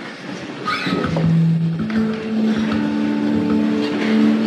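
An electric guitar plays a few notes.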